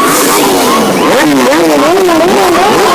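A quad bike engine revs loudly nearby.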